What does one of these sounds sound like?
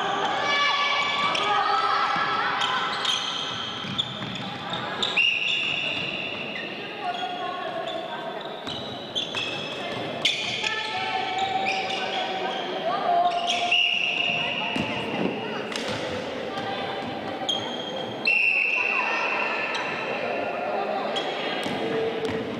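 A crowd of young people chatters and calls out in an echoing hall.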